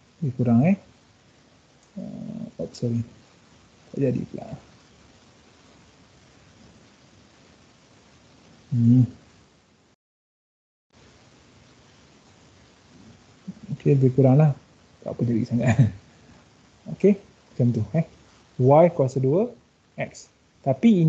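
A man speaks calmly in short phrases through a computer microphone, with pauses.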